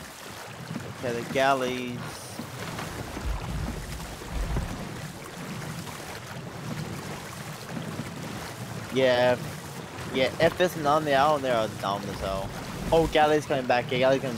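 Rough waves crash and rumble against a small boat.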